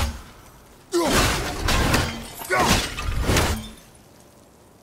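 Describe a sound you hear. An axe whooshes through the air.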